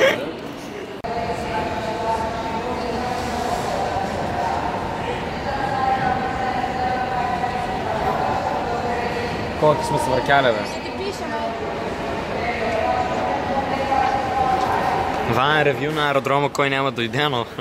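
An escalator hums and rattles steadily as it moves.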